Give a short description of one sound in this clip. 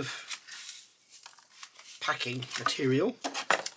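Cardboard and foam pieces rattle as a hand sorts them in a box.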